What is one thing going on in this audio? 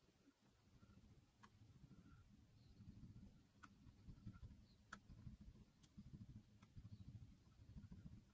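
A metal tip scrapes and clicks faintly against a thin metal part.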